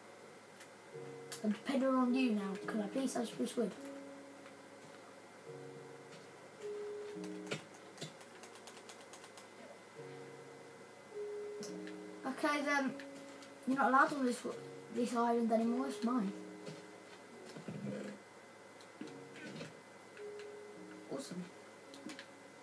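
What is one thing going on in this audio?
Game music with soft, slow notes plays from a television speaker.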